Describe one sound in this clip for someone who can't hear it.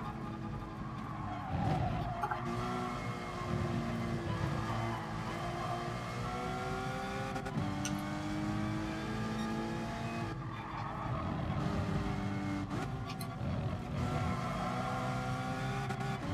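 A racing car engine revs high and climbs through the gears, dropping in pitch at each shift.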